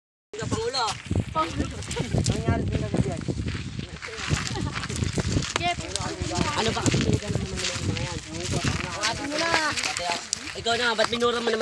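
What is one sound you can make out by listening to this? Girls scuffle and struggle on gravel.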